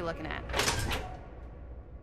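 A heavy metal door clanks and grinds open.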